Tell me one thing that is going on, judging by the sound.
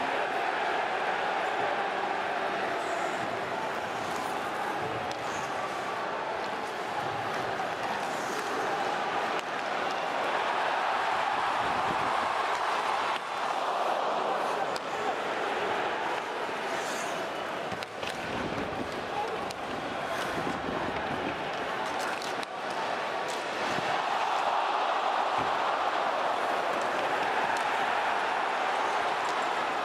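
Sticks and a puck clack on the ice.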